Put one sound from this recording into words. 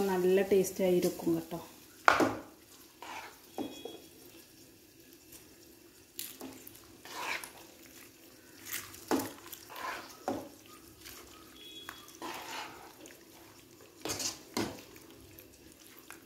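A metal spoon scrapes and knocks against a pot while stirring thick food.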